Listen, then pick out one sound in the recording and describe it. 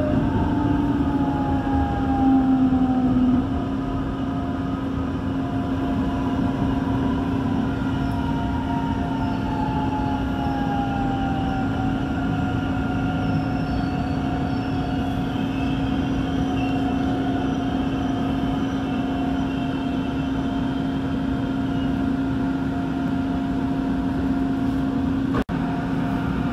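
An electric commuter train rolls through a station, heard from inside, its motors whining as it slows.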